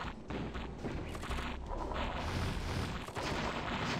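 Weapons fire in rapid bursts.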